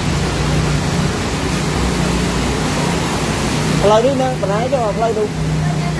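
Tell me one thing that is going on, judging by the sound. Floodwater splashes and rushes along the street.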